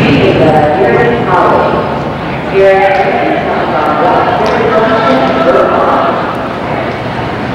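A man calls out loudly to a dog.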